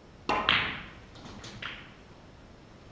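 Snooker balls clack together and knock against the cushions.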